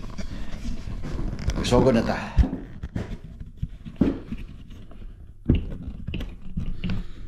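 A man speaks calmly and close by into a microphone.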